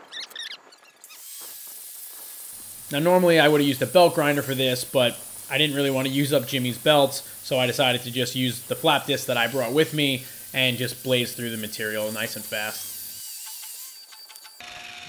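An angle grinder whines as it grinds metal.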